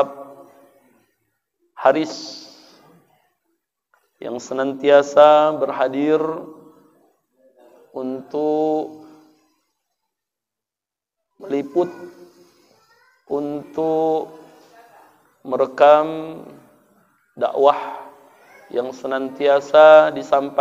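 A middle-aged man speaks earnestly into a microphone in phrases broken by pauses.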